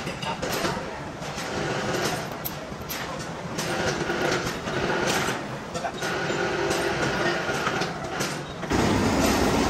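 A steel chain clinks and rattles against a metal billet.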